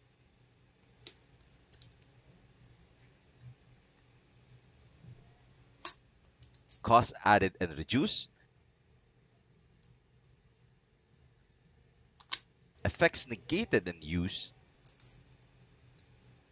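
Thin plastic film crinkles as it is peeled off a small badge.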